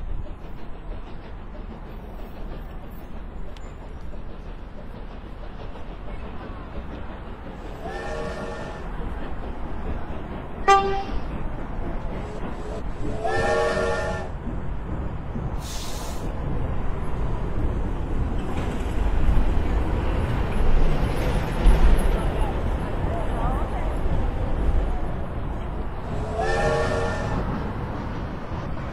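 A steam train rumbles and clatters along the track, growing louder as it passes close by.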